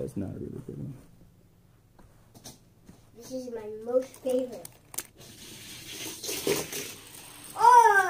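A small toy car rolls along a plastic track.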